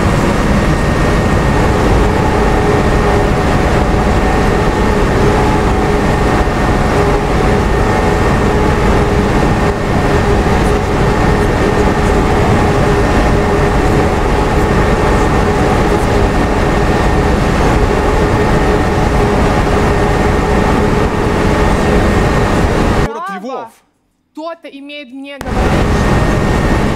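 A bus engine drones steadily while driving.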